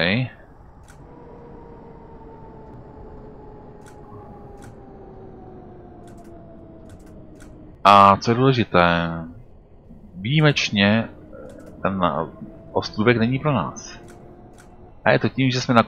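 A tram's electric motor whines, slowly falling in pitch.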